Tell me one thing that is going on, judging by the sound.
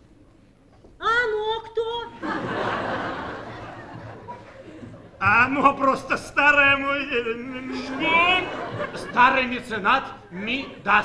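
A woman speaks loudly and theatrically in a large echoing hall.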